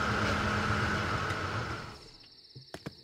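A truck engine rumbles and then shuts off.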